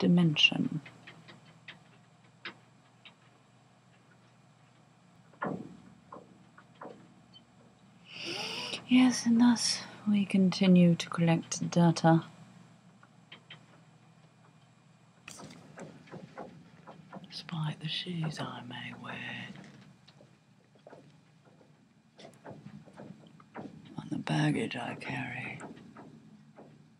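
A woman speaks close to a microphone, calmly.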